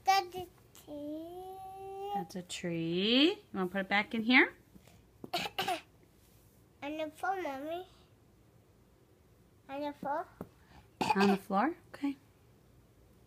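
A toddler babbles and squeals up close.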